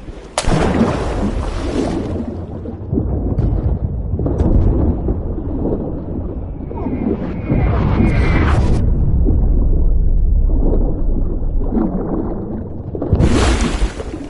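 Water rumbles and gurgles, heard muffled from underwater.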